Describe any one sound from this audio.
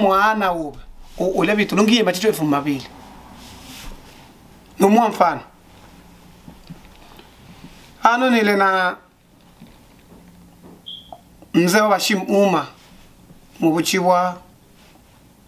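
A man speaks slowly and expressively into a microphone close by, in bursts with long pauses.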